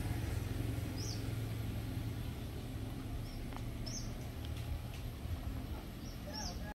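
Tyres roll slowly over gravel.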